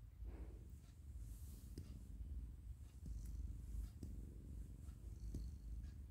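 A hand rubs softly through a cat's fur.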